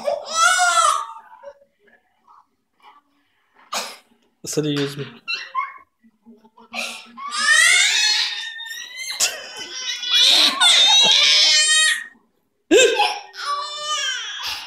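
A baby girl cries loudly, close by.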